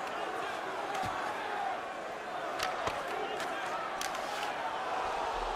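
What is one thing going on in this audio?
Hockey sticks clack against a puck on ice.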